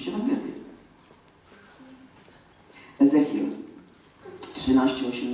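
A woman speaks through a microphone in a large echoing hall, pausing between phrases.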